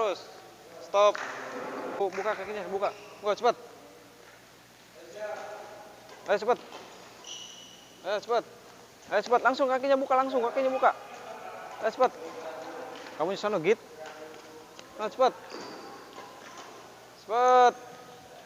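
A man speaks to a child with encouragement in a large echoing hall.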